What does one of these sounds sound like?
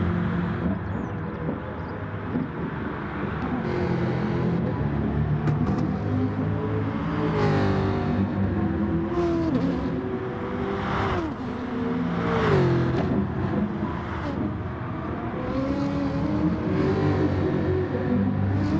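A race car engine roars and revs up and down through the gears.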